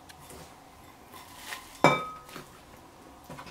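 Dry shredded fish rustles as it drops into a glass bowl.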